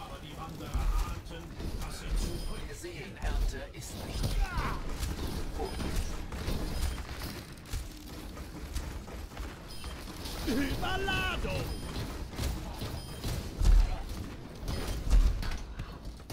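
Heavy blasts boom now and then.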